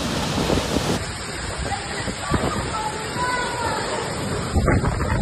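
Strong wind roars and gusts through a tree.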